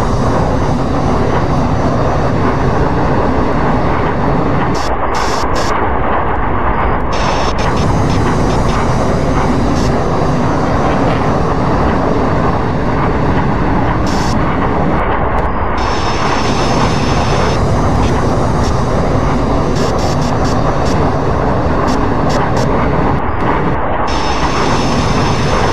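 Jet engines roar loudly and steadily.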